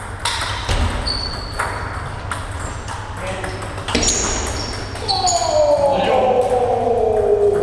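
Ping-pong balls click sharply against paddles and tables, echoing in a large hall.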